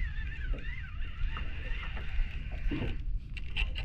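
A fishing reel clicks as it is handled.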